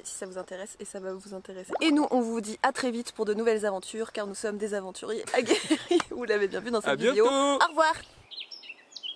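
A young woman talks close up.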